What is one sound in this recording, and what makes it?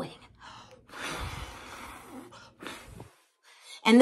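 A woman blows a puff of air through pursed lips.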